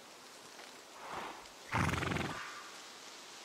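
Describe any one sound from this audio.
A horse snorts nearby.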